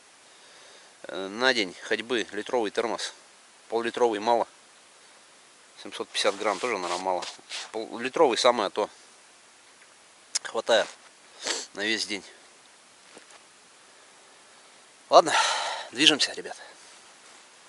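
A man speaks calmly close by, outdoors in quiet.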